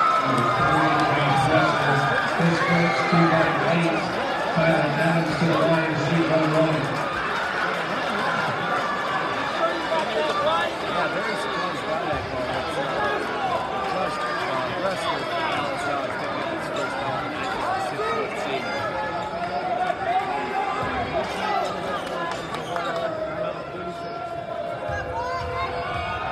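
A large crowd chatters loudly in an echoing gym.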